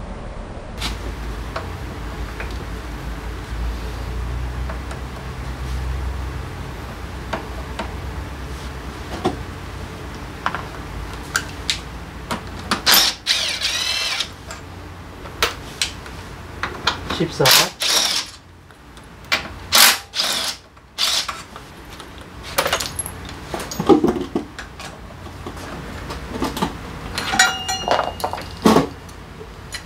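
A long hex tool clinks against a metal brake caliper.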